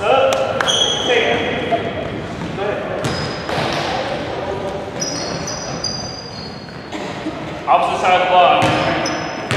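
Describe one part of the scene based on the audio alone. Children shout and call out across an echoing hall.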